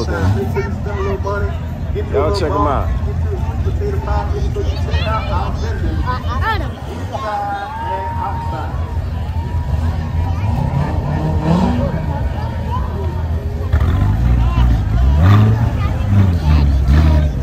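Sports car engines rumble deeply as the cars roll slowly past.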